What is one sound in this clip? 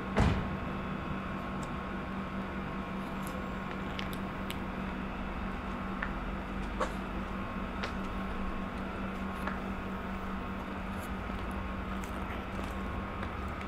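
High heels click on pavement.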